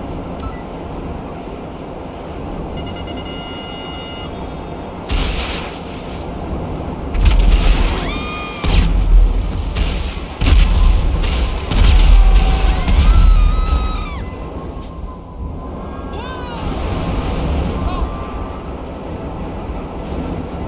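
A jet-powered motorbike roars and whooshes through the air.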